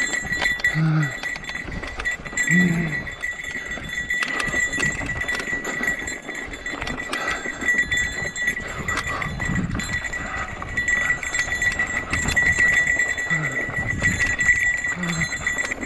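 Mountain bike tyres crunch and rattle over a rocky dirt trail.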